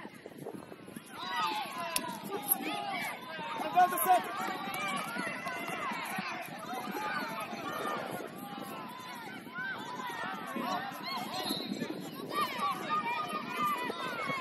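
Young children shout and call to each other outdoors.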